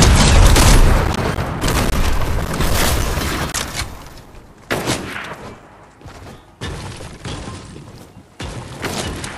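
Footsteps thud on a hard roof.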